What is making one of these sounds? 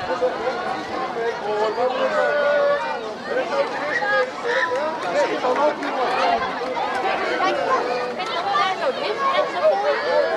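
A crowd of adults and children chatters and calls out nearby, outdoors.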